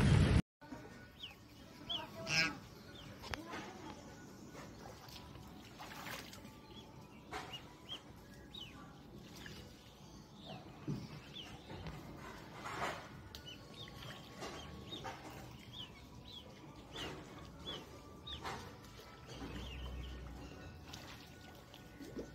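Ducklings peep in short, high chirps.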